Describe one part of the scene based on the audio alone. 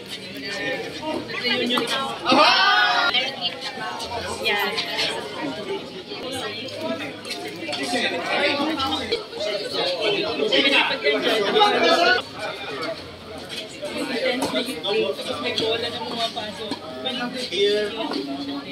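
Tennis rackets strike a ball back and forth.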